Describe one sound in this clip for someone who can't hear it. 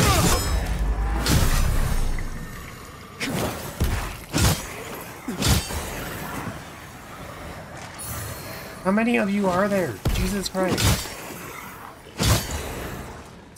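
Blades clash and strike with sharp metallic hits in a fight.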